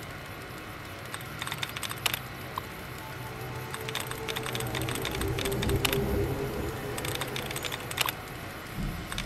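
Keys clatter as text is typed on a computer terminal.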